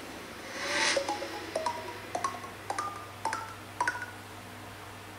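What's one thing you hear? A tablet game plays a series of short chimes, each pitched higher than the last.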